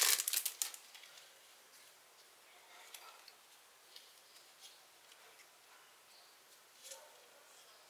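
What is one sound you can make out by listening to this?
Small plastic toys click softly as they are handled.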